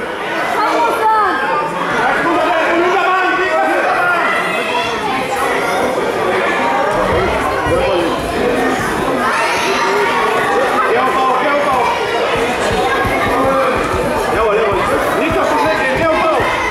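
A crowd of children chatters and shouts in an echoing hall.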